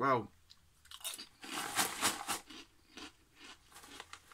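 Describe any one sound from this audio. A man crunches a crisp while chewing.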